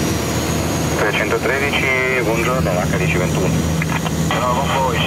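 A man talks over the aircraft's headset radio, heard through the engine noise.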